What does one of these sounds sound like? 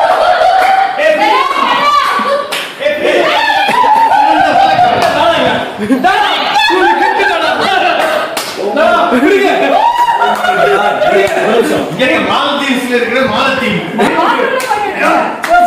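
Several men and women cheer and chatter excitedly.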